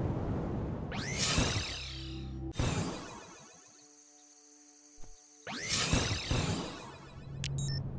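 A shimmering sci-fi teleport effect sweeps and whooshes.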